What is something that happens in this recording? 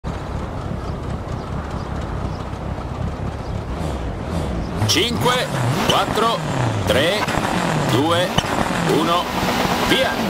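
A rally car engine idles with a low rumble.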